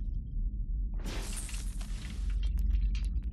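A robot whirs and clanks close by.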